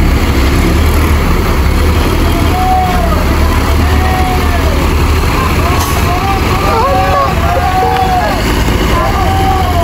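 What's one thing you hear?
Bus engines idle with a steady low rumble.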